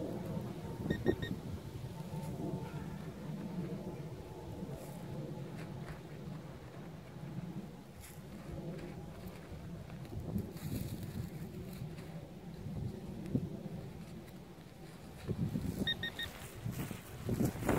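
Gloved hands scrape and scoop dry soil close by.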